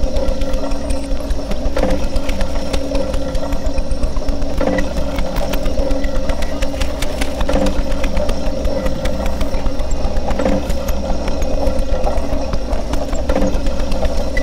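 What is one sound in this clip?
Electronic music drones steadily with a low hum.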